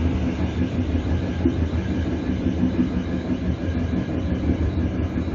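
A train rumbles along rails, its wheels rolling over the track.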